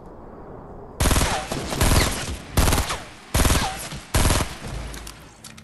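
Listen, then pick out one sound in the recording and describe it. Gunshots fire in a quick series of loud bursts.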